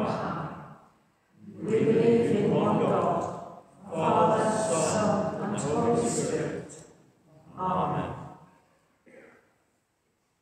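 An elderly woman speaks calmly and slowly into a microphone in a large echoing hall.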